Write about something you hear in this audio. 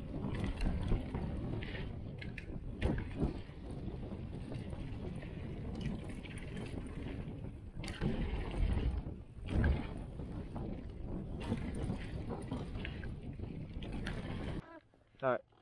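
Bike tyres rumble and crunch over a dirt trail.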